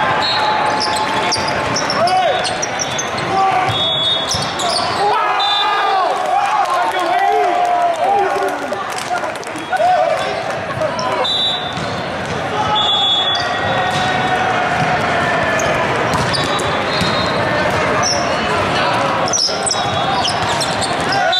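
Sneakers squeak on an indoor court in a large echoing hall.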